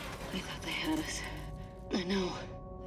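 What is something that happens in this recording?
A young woman speaks quietly, muffled through a gas mask.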